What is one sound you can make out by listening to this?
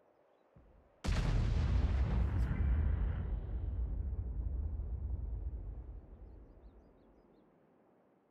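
A heavy gun fires with a loud boom that rumbles away slowly.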